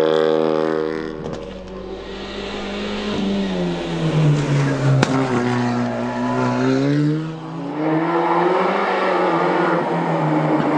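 A second rally car engine drops in pitch, then revs up again as the car comes by.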